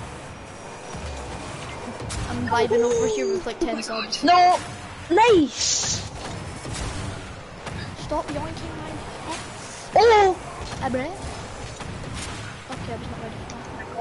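A rocket boost hisses and whooshes.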